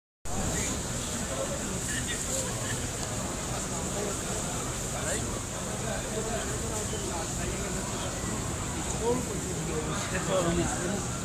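A crowd of men murmur and talk nearby.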